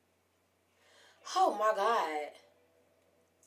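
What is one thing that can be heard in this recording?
A young woman exclaims in surprise close by.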